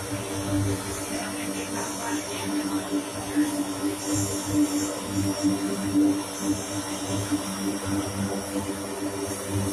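Propeller engines drone steadily as a large plane rolls along a runway.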